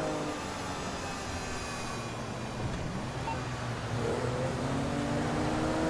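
Traffic rushes past on a busy highway.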